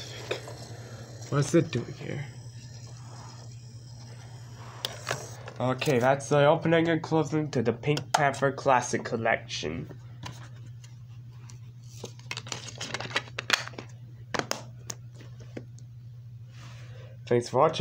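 A plastic case clicks and taps as hands handle it.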